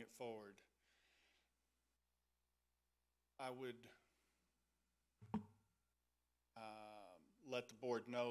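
A middle-aged man speaks through a microphone in a calm, halting manner, with long pauses.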